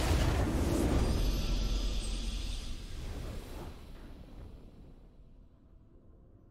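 A triumphant victory fanfare swells and fades away.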